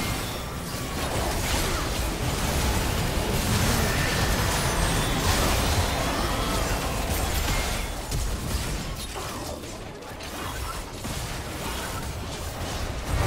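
Game spells crackle and blast in a fierce fight.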